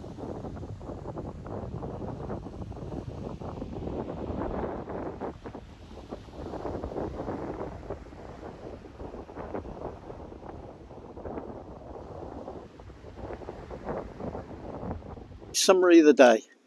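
Waves break and wash onto a beach.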